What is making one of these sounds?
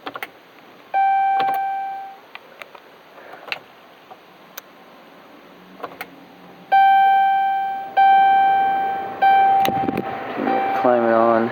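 A car's warning chime sounds in single ringing tones that fade away.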